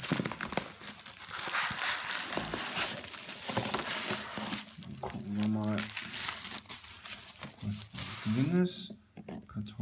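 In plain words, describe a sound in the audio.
Plastic bubble wrap rustles and crinkles as it is handled.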